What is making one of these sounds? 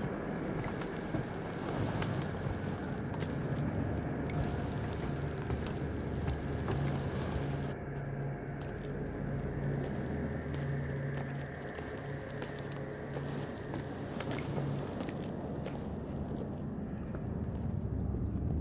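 A burning torch flame crackles and roars.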